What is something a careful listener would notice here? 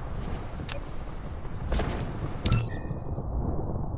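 A short click sounds as a menu opens.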